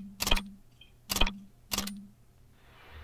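Short electronic menu blips sound in a video game.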